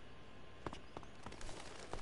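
A bird flutters its wings.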